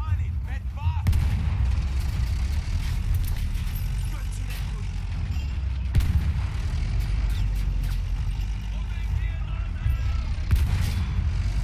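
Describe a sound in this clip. Gunshots crack sharply now and then.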